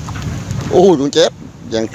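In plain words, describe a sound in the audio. A fish splashes in water inside a net.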